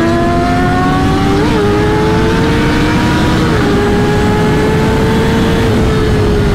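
A motorcycle engine roars loudly close by, its pitch climbing and dropping as it shifts gears.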